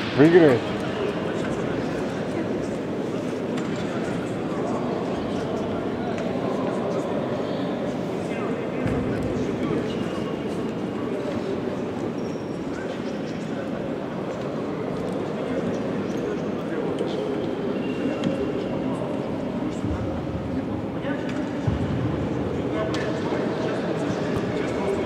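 A man talks urgently to a team in a huddle.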